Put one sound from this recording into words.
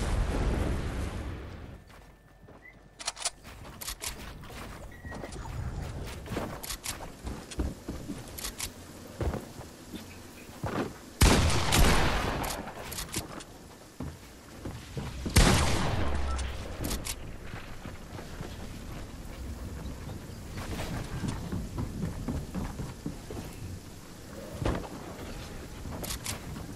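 Wooden walls and ramps snap into place with quick knocks.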